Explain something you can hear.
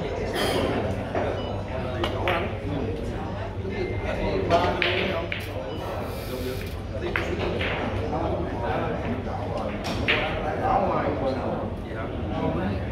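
People chatter in the background of a large room.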